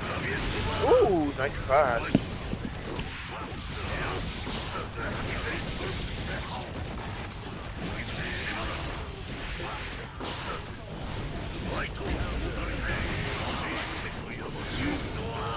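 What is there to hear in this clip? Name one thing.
Sharp hits and slashes from a fighting game land in quick succession.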